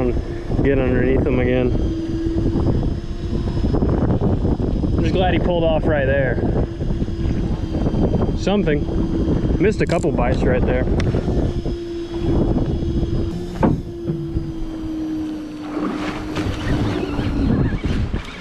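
Waves lap against a boat's hull.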